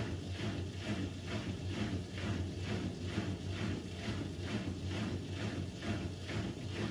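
A washing machine drum hums steadily as it turns.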